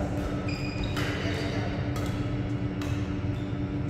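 Shuttlecocks are struck sharply with rackets in a large echoing hall.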